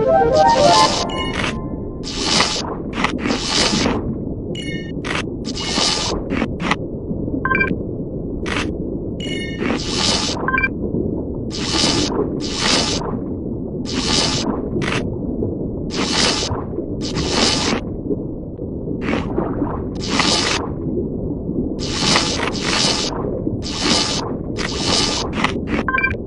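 Electricity crackles and zaps around a shark.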